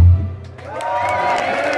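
A bass guitar thumps low notes.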